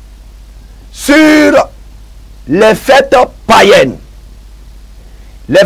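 A man speaks loudly and with animation into a clip-on microphone.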